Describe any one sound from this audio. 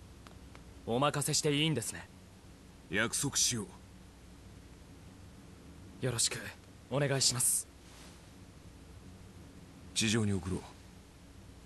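A young man speaks in short, firm phrases.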